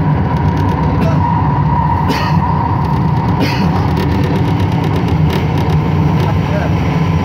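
Train wheels clatter on rail joints.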